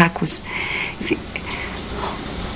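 A woman speaks softly on a phone, close by.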